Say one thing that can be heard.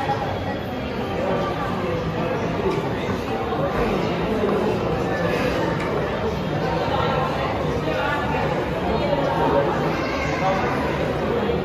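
Chess pieces tap down on a board.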